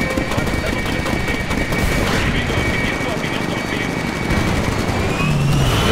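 A gunship's engines hum steadily as it hovers and flies off.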